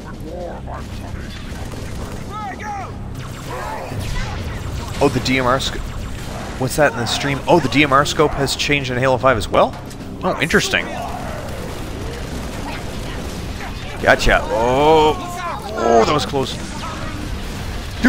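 A young man talks with animation into a headset microphone.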